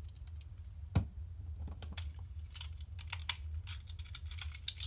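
Spinning tops whir and clack against each other inside a plastic bowl.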